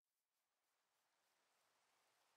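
Rain patters softly.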